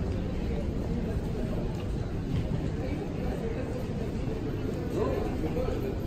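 Footsteps echo through a large hall.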